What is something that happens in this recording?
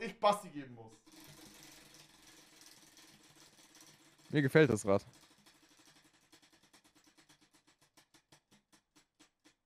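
A prize wheel spins, its pointer ticking and slowly slowing down.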